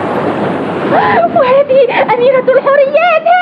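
A young boy speaks brightly.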